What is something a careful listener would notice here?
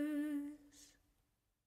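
A young woman hums a soft, wavering note close by.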